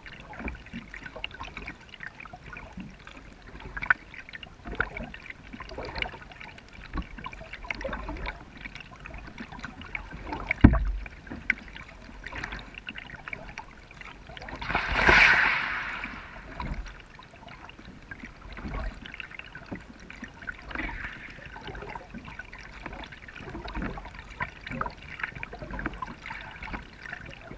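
A kayak paddle dips and drips in calm water.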